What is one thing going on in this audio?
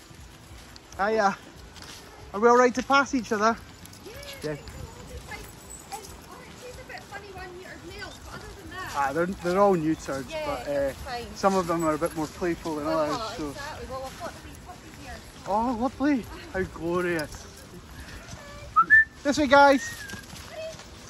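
Dogs whine and yelp excitedly close by.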